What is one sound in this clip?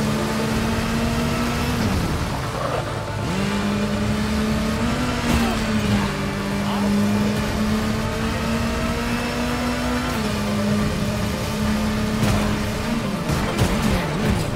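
A motorcycle engine roars steadily, its pitch dipping and rising as it shifts speed.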